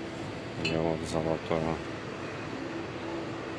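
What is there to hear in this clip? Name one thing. Glass bottles clink softly as one is lifted from a shelf.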